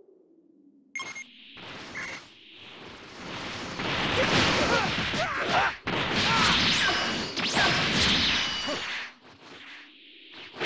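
Punches and energy blasts thud and crackle in a fast fight.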